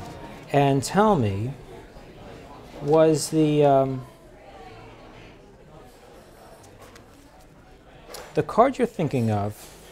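Playing cards shuffle and riffle in a man's hands.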